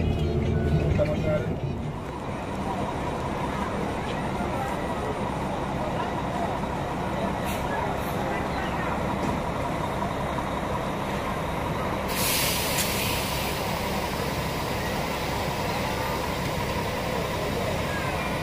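Bus engines idle with a steady low rumble.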